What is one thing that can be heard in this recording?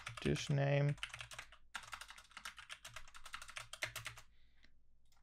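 Computer keys click rapidly.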